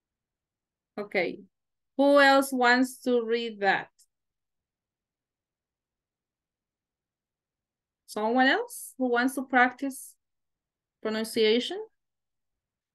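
A woman speaks calmly through an online call, in short phrases with pauses.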